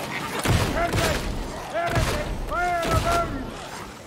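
A flamethrower roars with bursts of fire.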